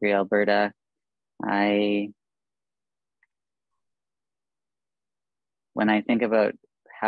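A middle-aged woman speaks warmly over an online call, in short phrases with pauses.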